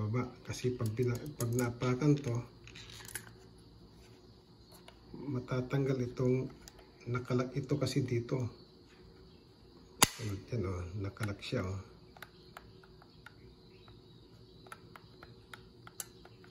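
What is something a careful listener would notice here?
Plastic parts of a spring trap click and snap as they are handled.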